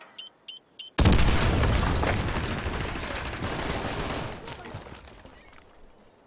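A large explosion booms and rumbles away.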